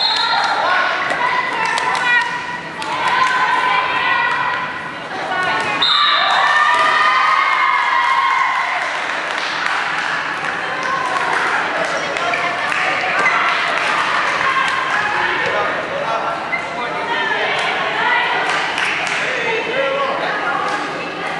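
A ball slaps into players' hands as it is caught.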